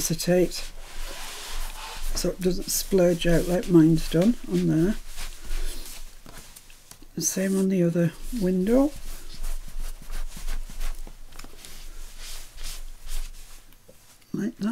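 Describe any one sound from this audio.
A cloth rubs softly against paper.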